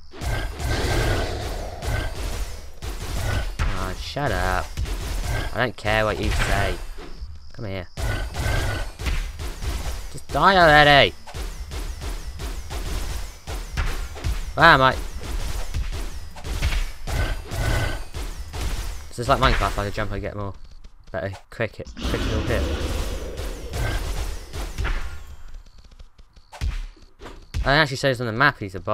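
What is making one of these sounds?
A sword repeatedly strikes a monster with quick thuds.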